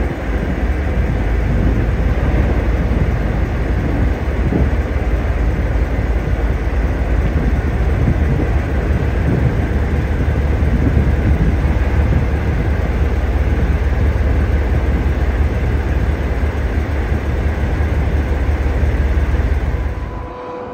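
A diesel locomotive engine rumbles steadily close by.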